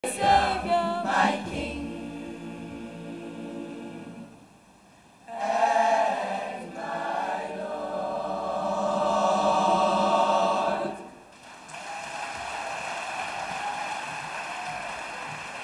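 A boys' choir sings together, heard through a microphone.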